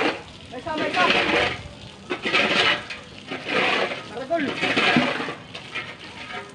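Men talk to each other nearby, outdoors.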